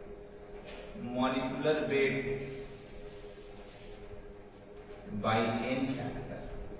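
A man speaks in a lecturing tone, close by.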